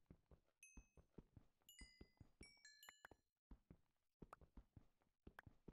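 A pickaxe chips at stone in quick, steady knocks.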